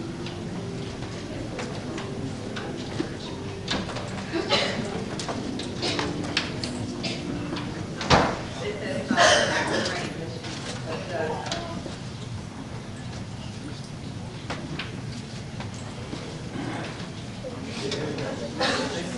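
A crowd of adults murmurs and talks quietly in a large echoing hall.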